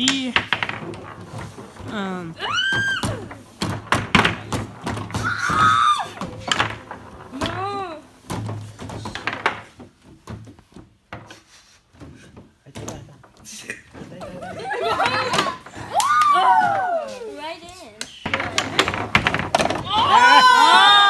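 Foosball rods clack and a ball knocks against a table.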